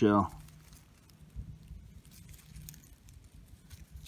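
Fingers scrape and crumble loose, dry soil.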